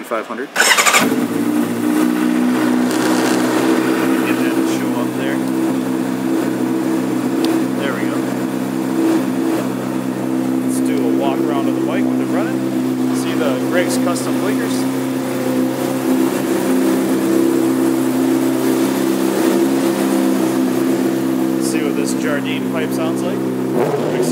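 A motorcycle engine idles with a steady, low rumble.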